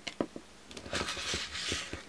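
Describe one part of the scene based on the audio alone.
A rotary cutter rolls across paper on a cutting mat.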